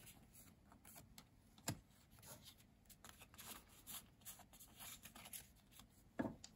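Trading cards rustle and flick softly as they are shuffled by hand.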